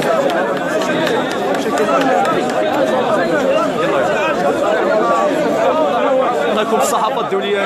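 A large crowd of men chants and shouts loudly outdoors.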